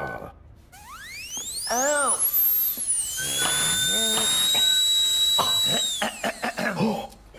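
A motorised chair whines as it rises.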